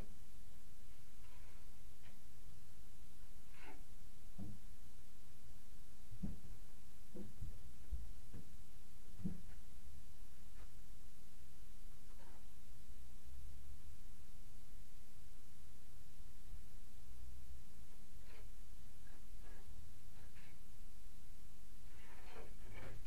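A tool scrapes and taps softly against a wall, close by.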